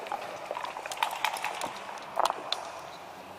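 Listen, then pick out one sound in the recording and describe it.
Game pieces click against each other as they are moved.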